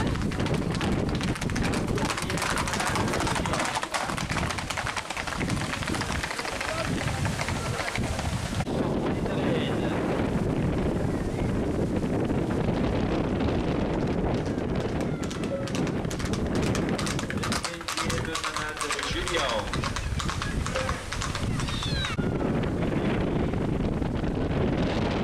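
A crowd of men and women chatters and shouts outdoors nearby.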